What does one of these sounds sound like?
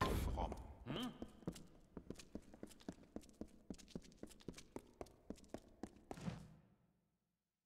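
Heavy armoured footsteps clank steadily on a stone floor.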